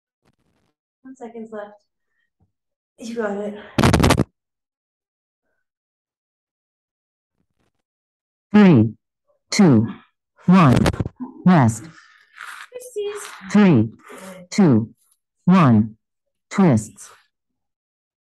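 A woman talks with animation through an online call.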